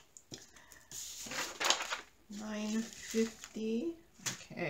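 A plastic bag of beads rustles and crinkles.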